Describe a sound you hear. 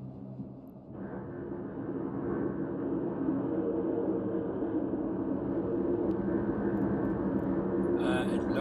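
A low electric rumble swells and crackles steadily.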